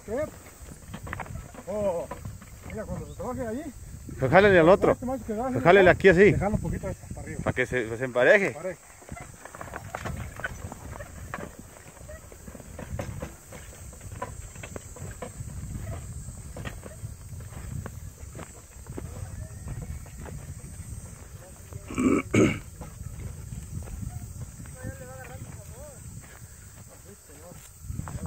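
Horses' hooves thud on stony ground.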